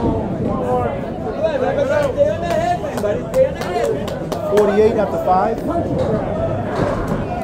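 A bowling ball rolls and rumbles down a lane.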